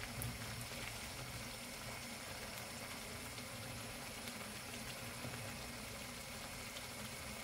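A thick sauce simmers and bubbles in a pan, with soft pops and sputters.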